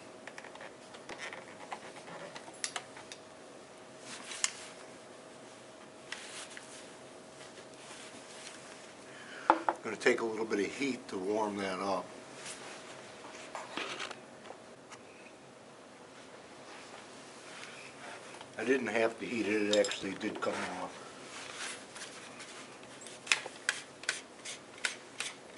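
Hard plastic parts click and knock as they are handled.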